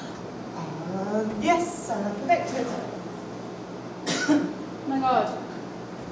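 A woman speaks clearly in a slightly echoing room.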